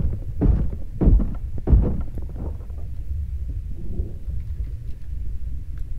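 Water rumbles softly in a low, steady murmur.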